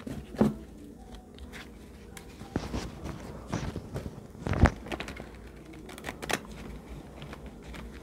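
Cards shuffle and riffle between hands.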